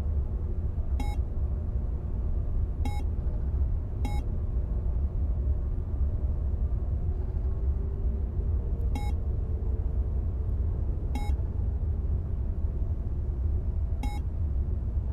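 Short electronic blips sound as a menu selection changes.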